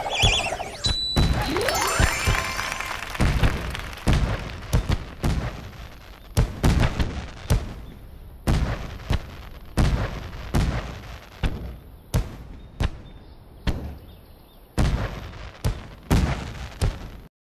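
Fireworks pop and boom repeatedly.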